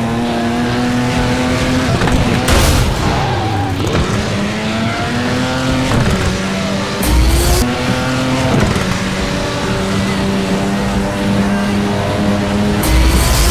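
A car engine roars, revving up and dropping in pitch as gears change.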